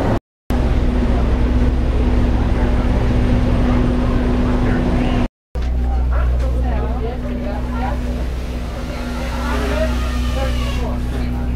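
A train engine hums steadily.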